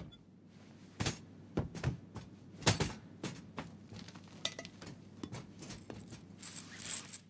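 Boots clank on metal steps and grating.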